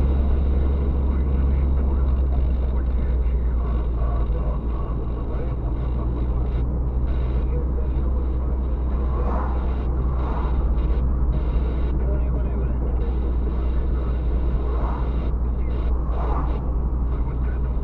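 A car engine hums steadily from inside the cabin while driving.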